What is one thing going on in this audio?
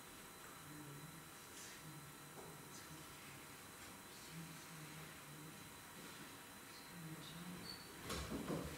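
A man speaks calmly through loudspeakers in a large echoing hall.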